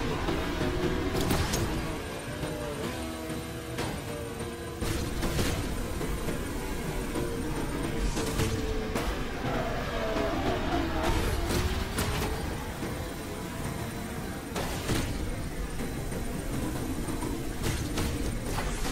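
A racing car's engine roars at high speed.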